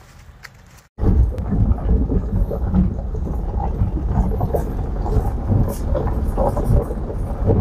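A vehicle rumbles and crunches along a gravel road.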